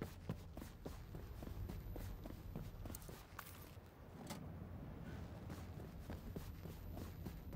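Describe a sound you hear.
Heavy footsteps thud steadily on a hard floor.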